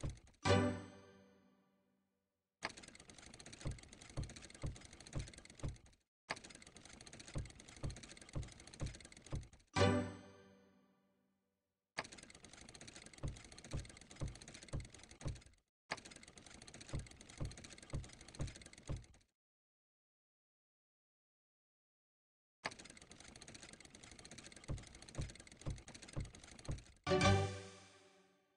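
A slot machine plays a bright ringing chime for a win.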